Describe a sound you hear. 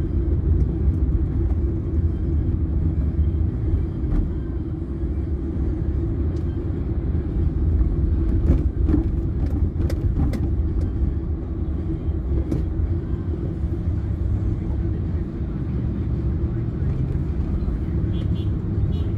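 A car engine hums steadily while driving in city traffic.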